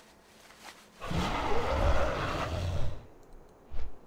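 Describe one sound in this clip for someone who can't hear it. A large dragon's wings beat with a rushing whoosh.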